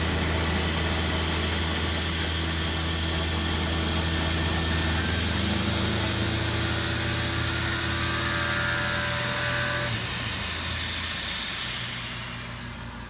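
A milling machine grinds steadily as its cutter shaves metal.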